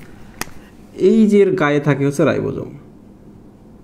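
A man speaks clearly and calmly, close by.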